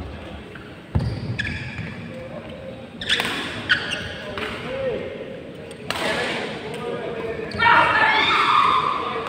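Young men talk and call out across a large echoing hall.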